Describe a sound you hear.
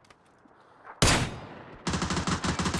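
A rifle shot cracks and echoes away.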